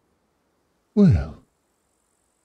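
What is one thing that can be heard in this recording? A man makes a short exclamation close to a microphone.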